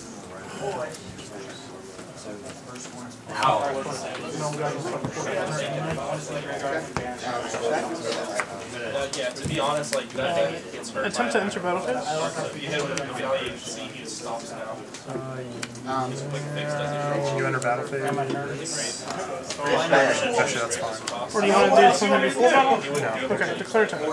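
Playing cards slide and tap on a tabletop.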